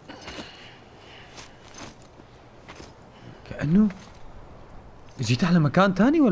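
Footsteps crunch on loose rocky ground.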